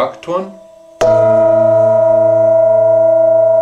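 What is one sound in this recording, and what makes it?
A metal singing bowl is struck and rings out loudly.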